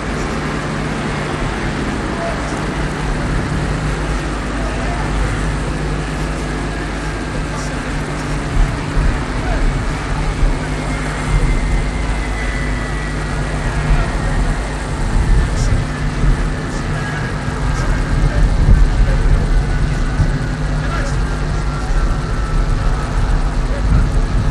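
Jet engines whine and roar steadily outdoors.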